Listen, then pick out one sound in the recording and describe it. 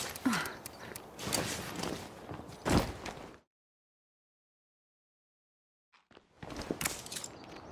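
Footsteps scuff on hard pavement.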